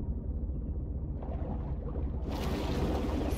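Water gurgles, heard muffled from beneath the surface.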